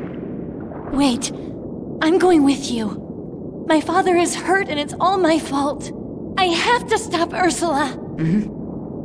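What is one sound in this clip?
A young man calls out with urgency.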